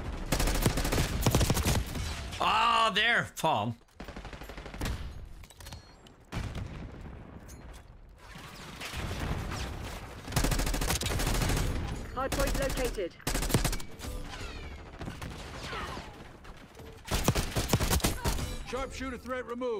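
Rapid gunfire bursts loudly in a video game.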